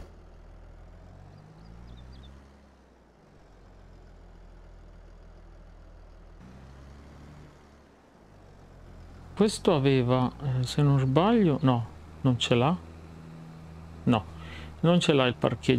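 A tractor engine rumbles as it drives along.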